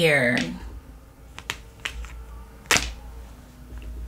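Cards shuffle and tap softly.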